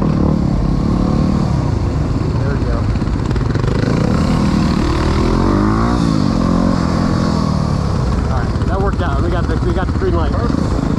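Wind buffets loudly as the motorcycles ride along.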